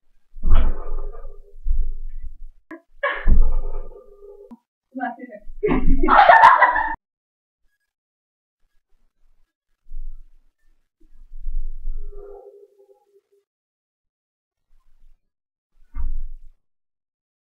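Feet thump and shuffle on the floor.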